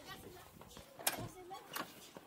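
A door clacks open.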